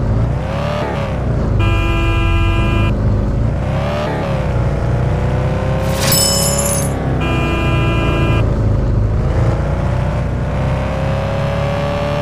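A car engine hums steadily, its pitch rising and falling as it speeds up and slows down.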